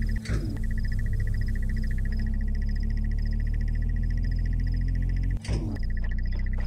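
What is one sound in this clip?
An energy barrier hums with a low, steady, pulsing buzz.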